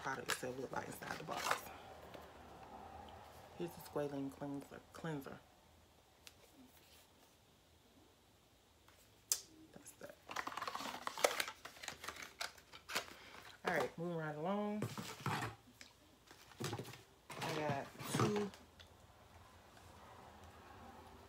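Objects rustle and knock as a woman handles them.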